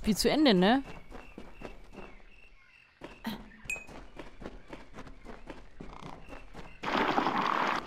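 Footsteps crunch steadily through grass and undergrowth.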